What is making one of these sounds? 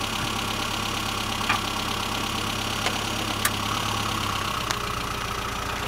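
A classic Mini's small four-cylinder engine idles.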